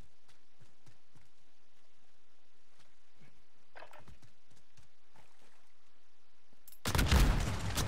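Footsteps crunch softly on the ground.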